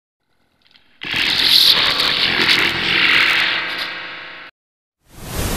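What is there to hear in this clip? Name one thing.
Harsh electronic glitch noise crackles and buzzes.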